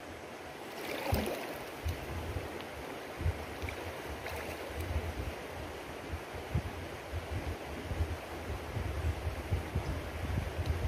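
Water sloshes as a woman moves through the shallows nearby.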